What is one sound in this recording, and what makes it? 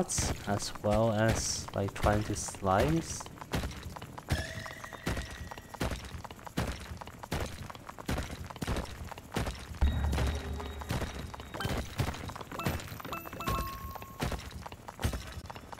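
Rock crumbles with quick, repeated digging knocks.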